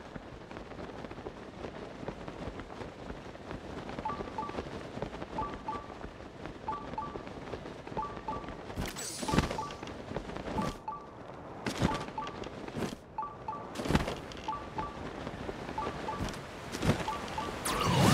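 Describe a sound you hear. Wind rushes steadily past during a long glide.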